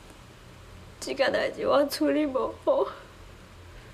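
A young woman speaks quietly and sadly, close by.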